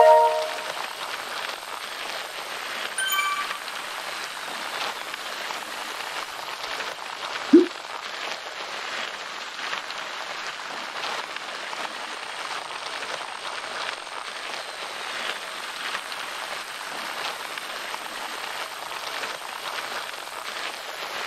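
An indoor bike trainer whirs steadily as someone pedals.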